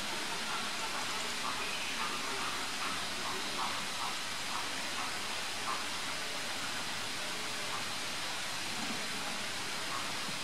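A small bird chirps softly and repeatedly nearby.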